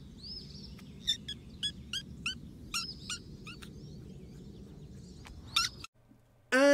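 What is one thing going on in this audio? A kitten meows in high, repeated cries close by.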